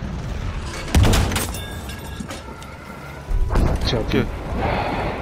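Loud explosions boom nearby.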